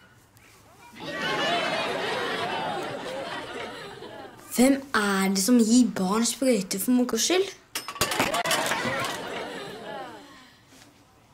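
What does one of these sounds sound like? A young boy speaks with animation close by.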